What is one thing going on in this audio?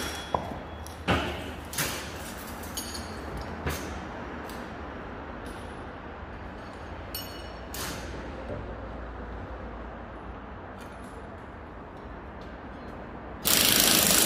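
Metal parts clink and knock as they are handled.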